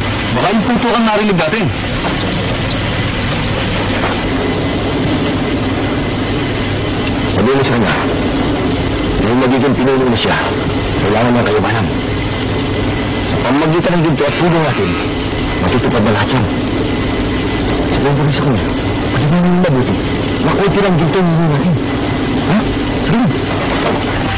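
A man speaks firmly and close by.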